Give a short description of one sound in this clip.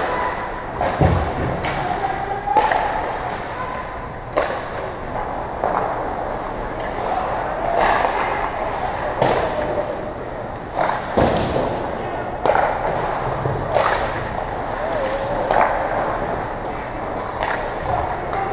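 Pucks and sticks clack sharply in a large echoing hall.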